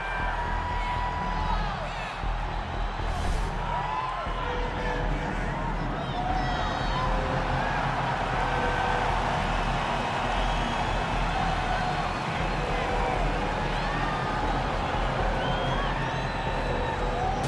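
A crowd cheers and murmurs throughout in a large arena.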